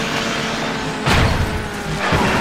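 A loud crash bursts as a car smashes through obstacles.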